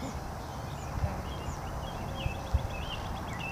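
A board clacks against pavement as a boy steps on.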